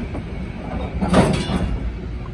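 Steel wheels squeal and clank on the rails.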